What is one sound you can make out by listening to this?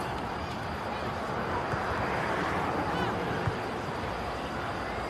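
Spectators nearby murmur and cheer.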